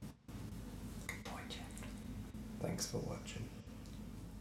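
A young man talks casually close by.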